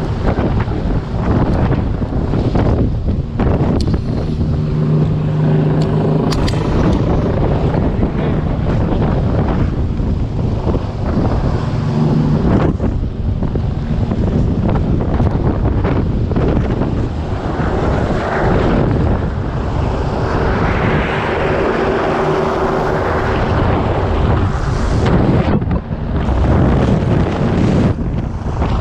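Wind buffets and rushes loudly.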